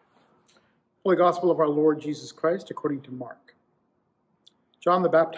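A man reads aloud calmly into a close microphone.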